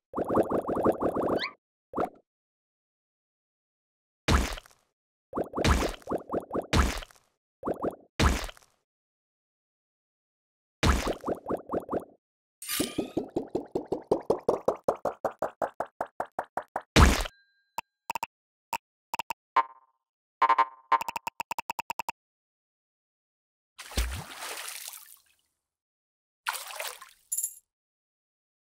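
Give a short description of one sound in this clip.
Cheerful video game sound effects play in short bursts of chimes and pops.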